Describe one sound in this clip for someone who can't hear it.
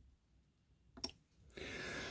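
A button clicks softly.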